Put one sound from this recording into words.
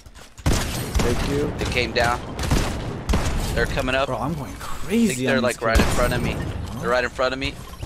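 A young man talks excitedly into a microphone.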